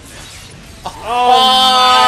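A young man yells out loudly and excitedly, close to a microphone.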